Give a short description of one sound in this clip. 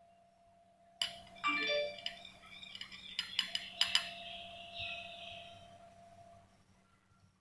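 A glass rod clinks and scrapes against a porcelain dish.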